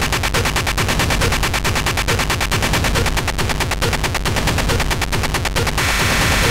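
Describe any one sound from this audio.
Loud electronic dance music plays with a fast, pounding beat that gives way to a steady swell of noise near the end.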